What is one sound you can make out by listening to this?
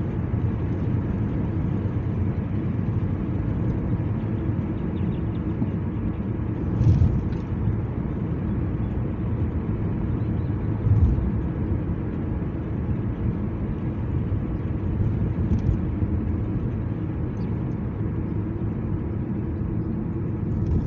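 Road noise rumbles steadily from inside a moving car.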